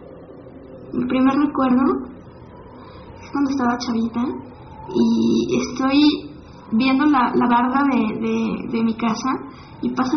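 A young woman speaks softly and thoughtfully, close to the microphone.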